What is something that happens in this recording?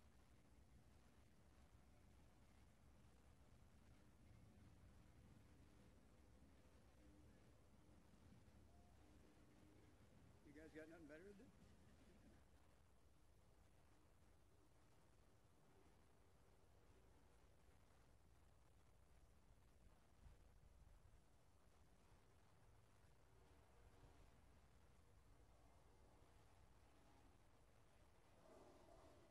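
Wind rumbles softly across a microphone outdoors.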